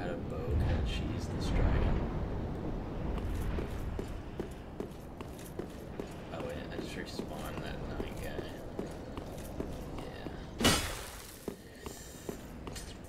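Armoured footsteps clank steadily on stone.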